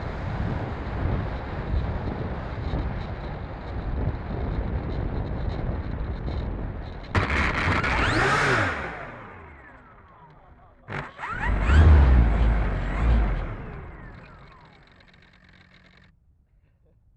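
A small electric propeller motor whirs close by, then winds down.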